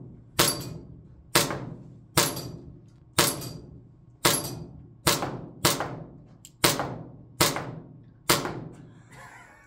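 A pistol fires shot after shot in a steady rhythm, each bang ringing in an echoing room.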